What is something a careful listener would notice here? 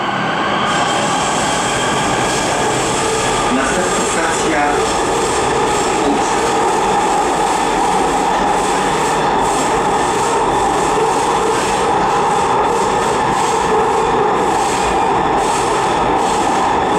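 Train wheels rattle and clatter on the rails.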